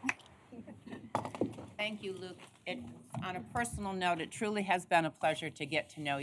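A woman speaks calmly over a microphone.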